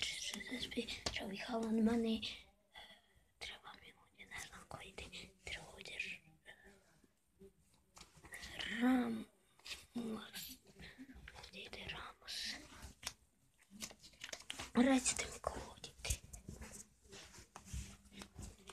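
Paper pages of an album rustle and flip under a hand.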